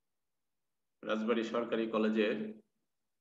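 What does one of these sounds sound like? A man speaks calmly into a microphone, as if over an online call.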